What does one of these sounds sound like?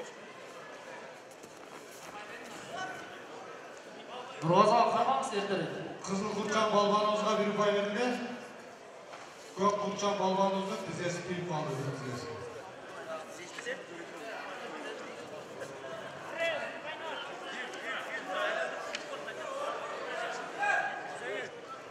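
A large crowd murmurs in a big echoing hall.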